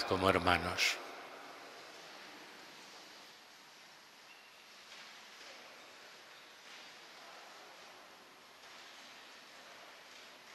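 A crowd murmurs quietly as people greet each other.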